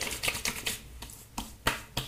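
A man rubs his hands together on his face.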